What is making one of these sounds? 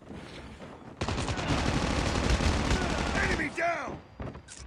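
A rifle fires in a rapid, loud burst.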